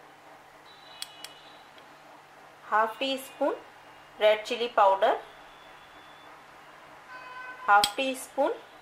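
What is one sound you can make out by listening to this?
A metal spoon clinks against a small glass bowl.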